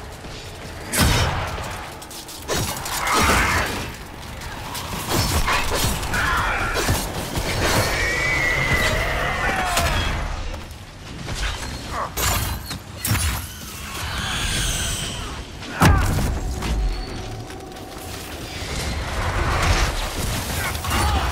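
Weapons clash and strike with sharp impacts.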